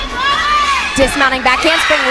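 A gymnast lands with a thud on a mat.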